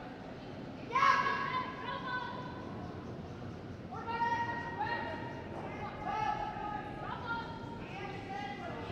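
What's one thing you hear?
A woman shouts drawn-out calls in a large echoing hall.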